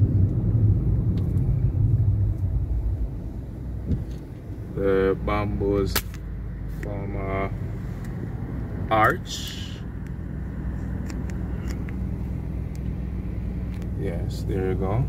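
A car engine hums steadily while driving.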